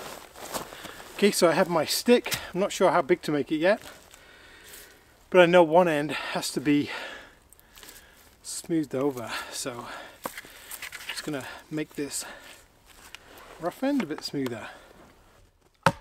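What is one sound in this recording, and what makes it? A man talks calmly close by, outdoors.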